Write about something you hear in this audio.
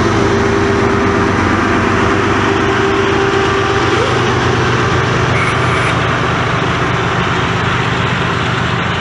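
A diesel locomotive rumbles loudly past, close by.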